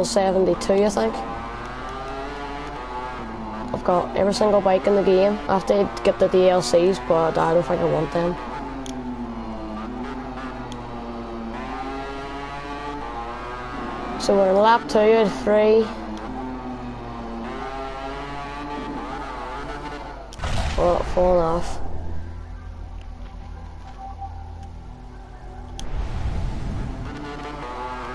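A motorcycle engine roars and revs up and down as it races.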